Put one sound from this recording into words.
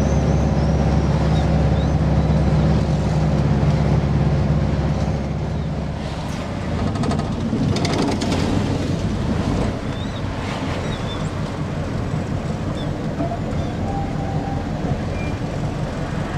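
An old bus engine rumbles and drones steadily from inside the cab.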